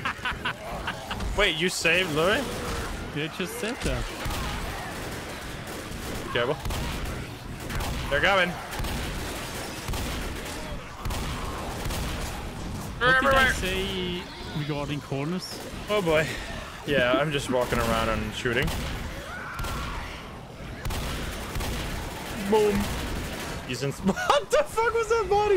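Shotgun blasts go off in quick bursts.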